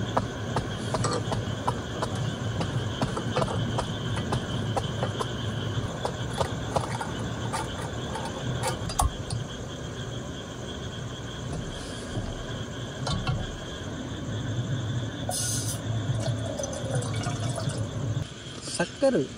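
A gas stove roars steadily.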